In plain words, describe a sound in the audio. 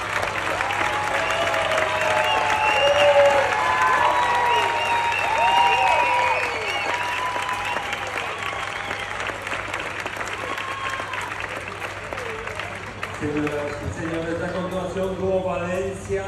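A large audience cheers and whistles in an echoing big tent.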